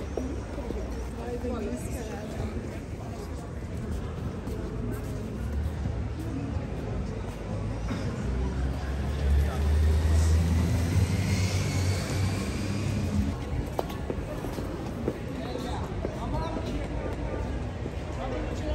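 Footsteps tap on a pavement as people walk past.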